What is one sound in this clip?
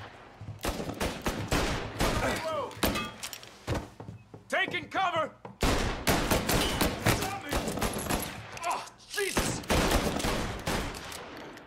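Pistol shots crack rapidly, one after another.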